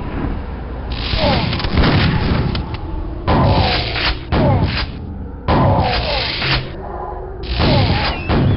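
Guns fire in loud bursts.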